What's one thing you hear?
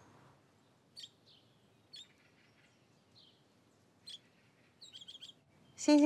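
Small birds chirp softly.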